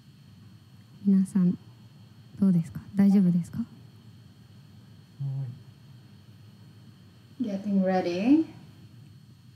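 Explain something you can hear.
A woman speaks briefly close to a microphone.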